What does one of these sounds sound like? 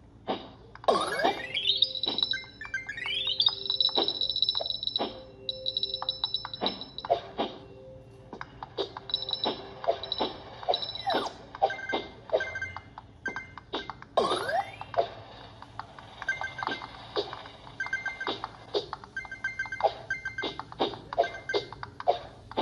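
A mobile game plays quick chiming and whooshing sound effects through a small speaker.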